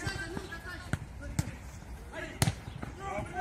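A football is kicked with a sharp thud.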